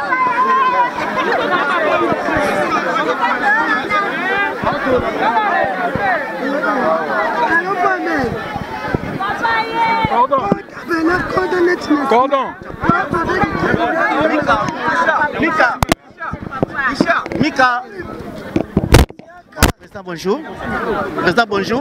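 A crowd of men and women talk and shout loudly all around, close by.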